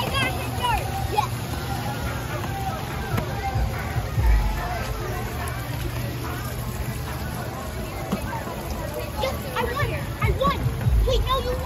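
Water churns and splashes steadily.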